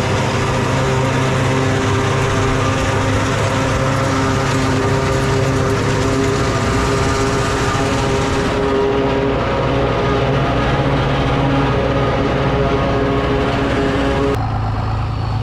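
A forage harvester roars and whirs loudly as it chops crop.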